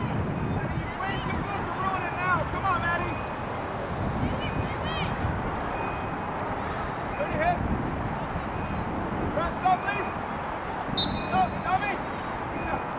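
Girls shout to each other across an open field.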